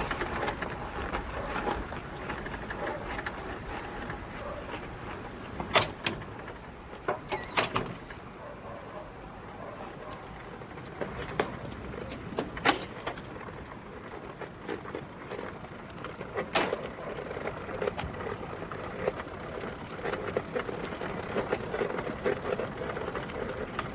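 A motorcycle engine hums as the bike pulls away and rides along.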